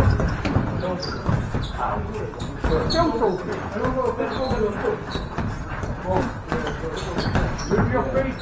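A man calls out instructions loudly nearby.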